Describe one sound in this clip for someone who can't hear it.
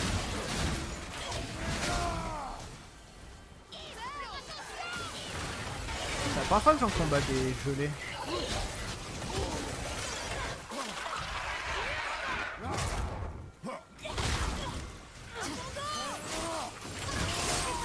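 Game weapons clash and thud with heavy impacts.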